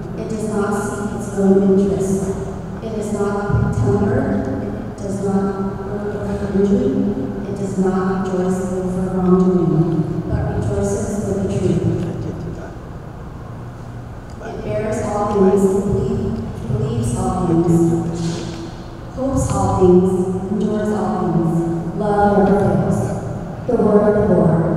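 A young woman sings into a microphone in a large echoing hall.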